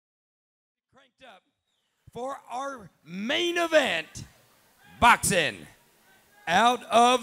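A man speaks loudly with animation through a microphone in a large hall.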